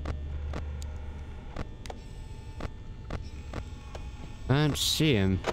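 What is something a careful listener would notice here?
Electronic static crackles and hisses steadily.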